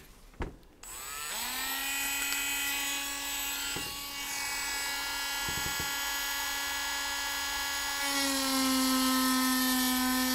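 A small rotary tool whirs up to speed and runs with a steady high whine.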